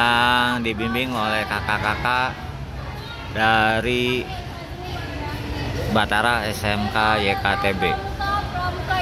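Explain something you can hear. A woman calls out loudly to a group outdoors.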